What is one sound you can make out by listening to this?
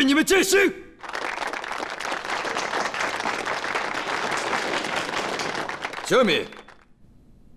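Men applaud with a steady clatter of clapping.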